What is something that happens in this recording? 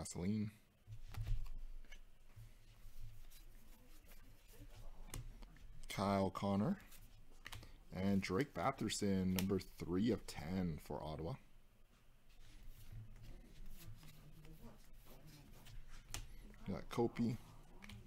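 Trading cards shuffle and flick softly between fingers.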